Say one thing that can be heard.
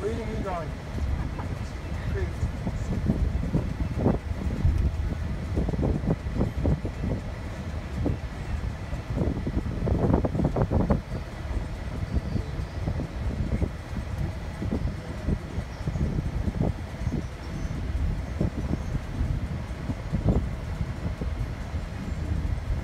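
Tyres rumble along a paved road, heard from inside a car.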